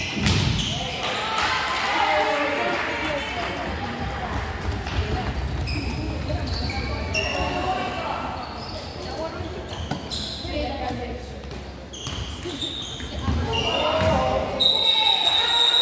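A handball thuds against the floor and walls.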